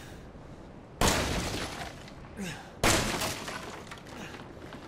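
A pistol fires two loud, sharp shots in an echoing room.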